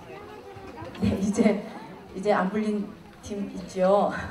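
A woman speaks into a microphone, heard over loudspeakers in a large echoing hall.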